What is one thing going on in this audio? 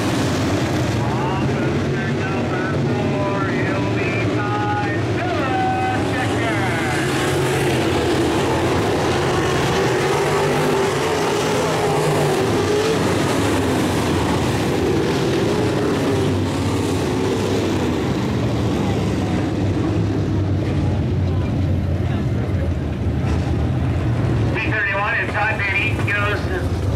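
V8 dirt-track modified race cars roar around an oval at full throttle, some of them far off.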